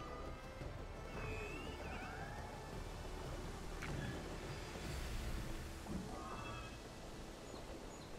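Wind rushes past steadily.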